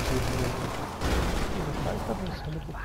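A van crashes with a heavy thud.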